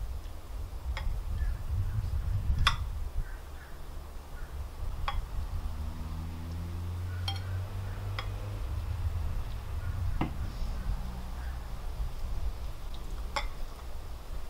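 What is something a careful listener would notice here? A spoon clinks against glasses.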